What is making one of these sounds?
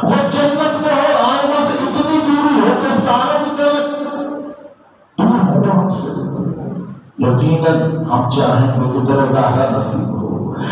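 A man preaches with fervour through a microphone and loudspeakers, in an echoing hall.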